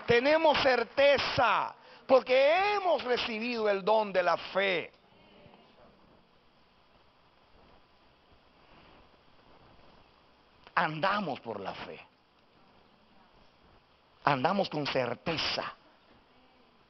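A middle-aged man preaches loudly and passionately through a microphone in a large hall.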